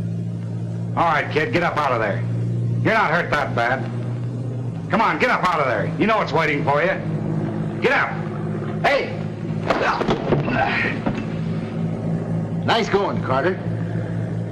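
A man speaks loudly and forcefully nearby.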